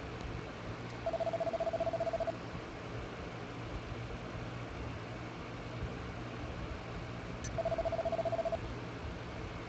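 Rapid electronic blips chatter in short bursts.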